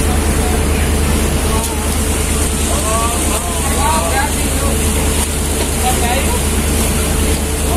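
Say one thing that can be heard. A small boat engine hums steadily nearby.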